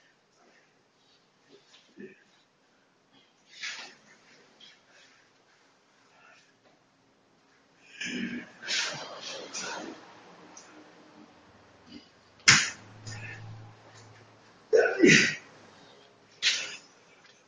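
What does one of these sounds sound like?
Feet shuffle and squeak on a hard floor.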